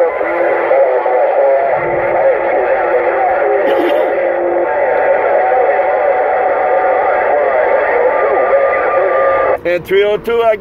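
Loud static hisses from a radio speaker.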